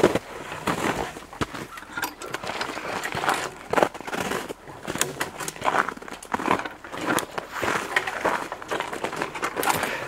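Footsteps crunch through snow and brush close by.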